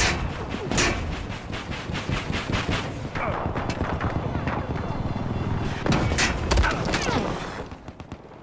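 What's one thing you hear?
A helicopter's rotor thumps and its engine roars steadily.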